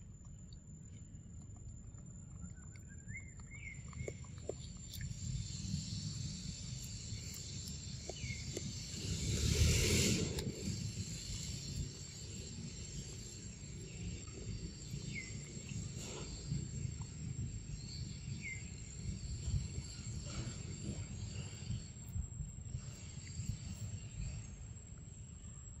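Wind rustles softly outdoors.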